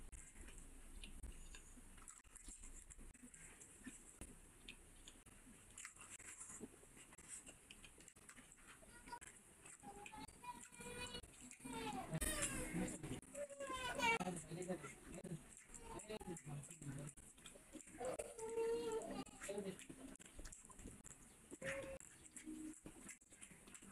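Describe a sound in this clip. Fingers squish and mix soft, wet food.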